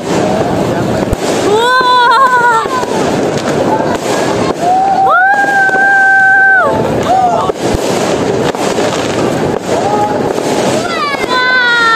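Fireworks pop in the distance.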